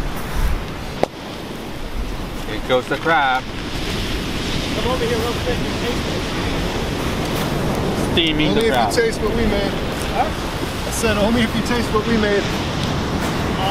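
Surf breaks on a beach.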